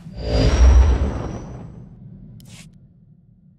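A heavy sliding door whooshes open.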